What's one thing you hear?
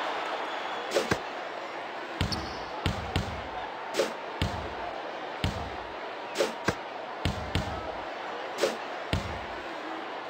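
A basketball bounces repeatedly on a hard court.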